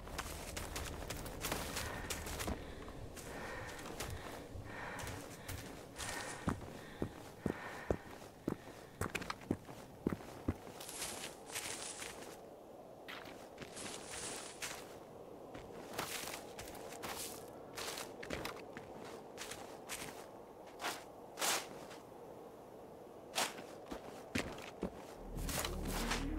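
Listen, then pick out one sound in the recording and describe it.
Footsteps crunch and rustle through undergrowth.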